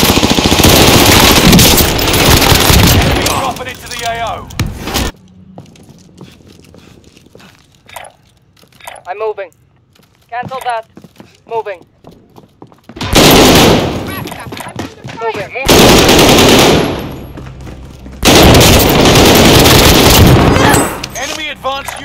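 A rifle fires in rapid loud bursts.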